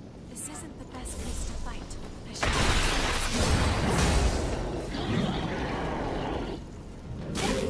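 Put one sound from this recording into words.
Weapons clash and strike with heavy impacts.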